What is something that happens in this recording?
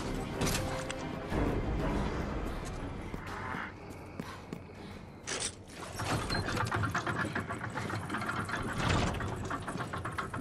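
Footsteps run on stone paving.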